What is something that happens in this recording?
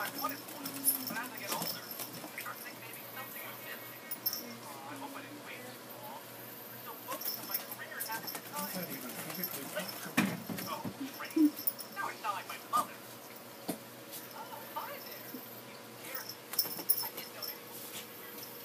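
A cat's claws scrabble on a carpeted platform as it spins.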